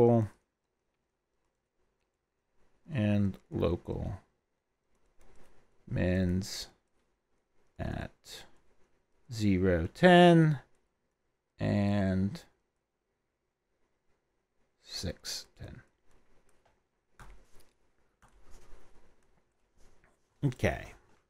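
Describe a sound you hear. A middle-aged man speaks calmly into a headset microphone, explaining in short phrases with pauses, as in a lecture.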